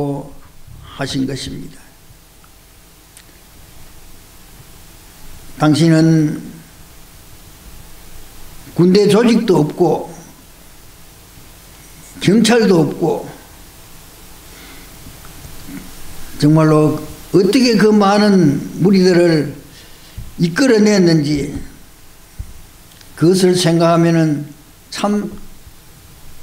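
An elderly man speaks slowly and calmly into a microphone, with long pauses between phrases.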